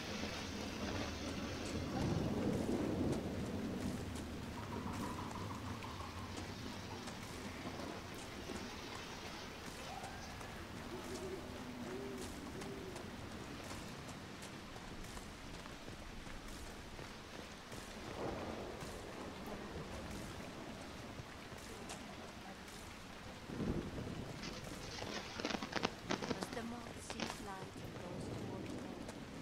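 Footsteps crunch steadily on gravel and stone.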